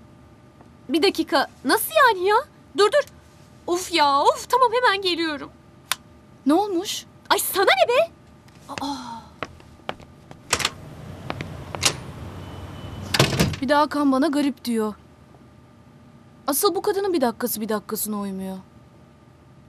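A young woman speaks in surprise.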